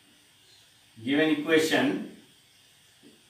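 A man speaks clearly into a nearby microphone.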